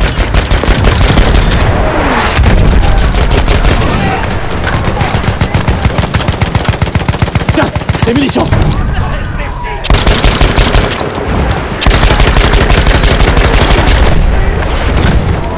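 A heavy machine gun fires in rapid, long bursts.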